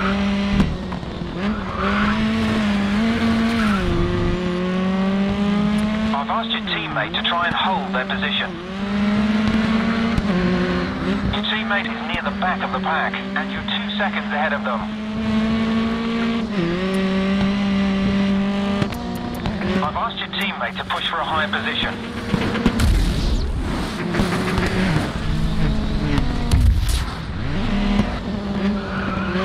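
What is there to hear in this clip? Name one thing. A racing car engine roars loudly, rising and dropping with gear changes.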